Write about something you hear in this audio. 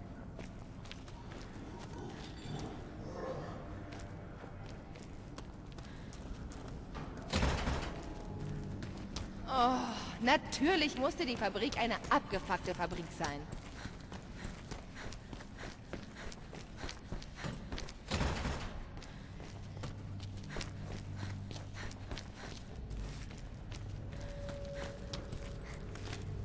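Footsteps tread on a hard, gritty floor.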